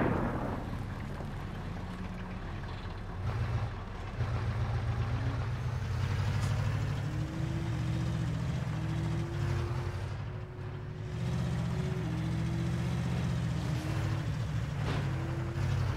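A tank engine rumbles and whines steadily as the tank drives.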